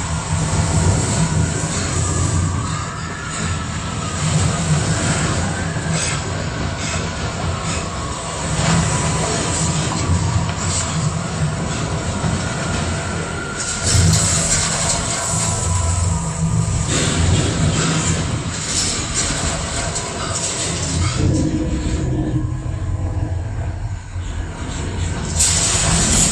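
A strong wind howls and roars across open ground.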